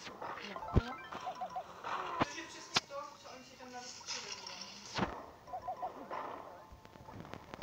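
Video game attack sounds burst and whoosh in quick succession.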